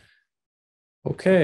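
An older man speaks through an online call.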